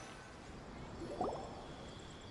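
A soft magical shimmer sparkles briefly.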